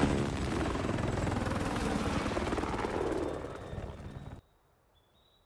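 A helicopter's rotor thumps loudly and its engine roars.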